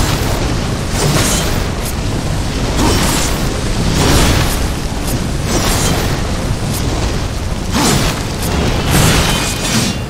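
Fiery explosions roar and crackle.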